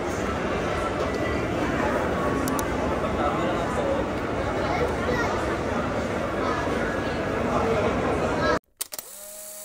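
Many voices murmur in a large echoing hall.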